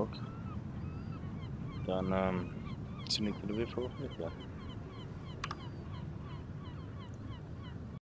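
Water laps gently against a harbour wall.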